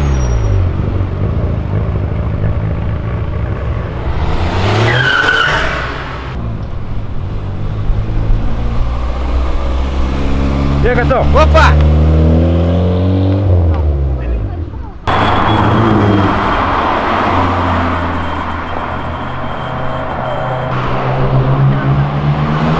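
Car engines rev loudly and roar past close by.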